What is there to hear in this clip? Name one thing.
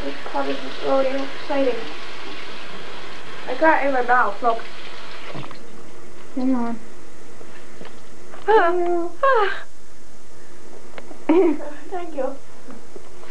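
A young woman talks in short bursts close to the microphone.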